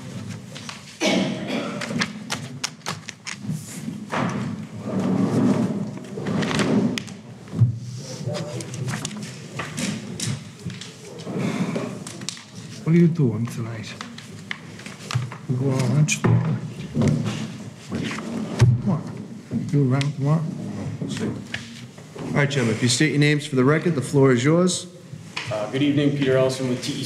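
A man speaks calmly into a microphone, reading out.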